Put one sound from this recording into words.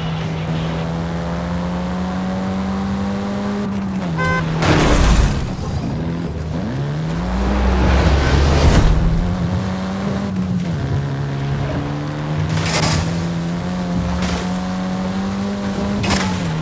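A car engine revs high and shifts gears.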